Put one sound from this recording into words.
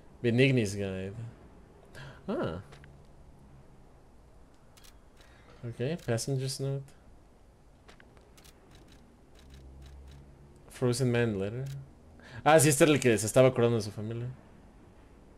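A man speaks casually into a close microphone, in short bursts.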